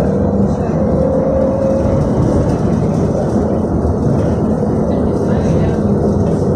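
A vehicle's engine rumbles steadily from inside as it drives along.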